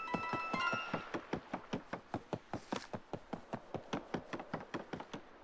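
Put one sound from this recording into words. Quick light footsteps patter on a wooden deck.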